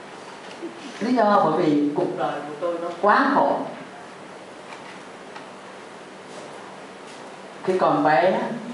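An elderly woman sings slowly through a microphone in a room with some echo.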